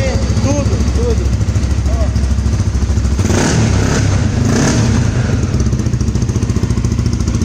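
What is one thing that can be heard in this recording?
A motorcycle engine idles with a rapid, throbbing exhaust.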